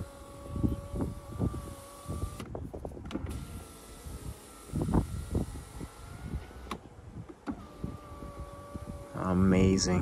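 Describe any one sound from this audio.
An electric car window motor whirs steadily as the window slides down and up.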